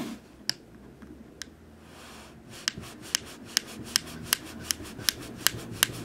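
A fingernail clicks and scrapes along the edge of a small device.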